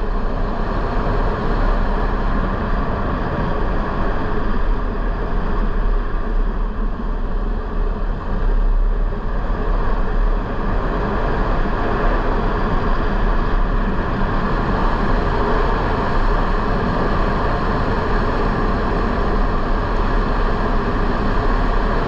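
Tyres crunch over a dirt road.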